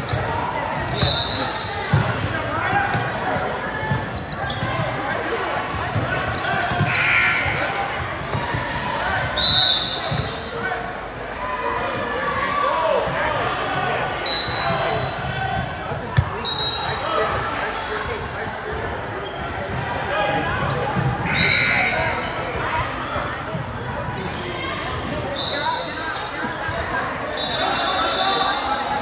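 Sneakers squeak sharply on a hardwood court in a large echoing gym.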